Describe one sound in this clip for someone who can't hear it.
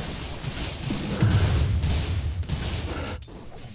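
A loud magical blast booms with a deep rumble.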